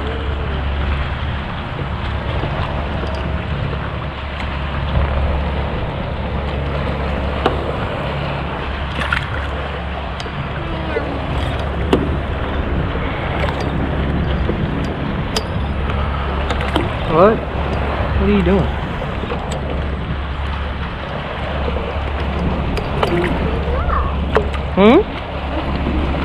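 Water laps and splashes against the side of a small boat.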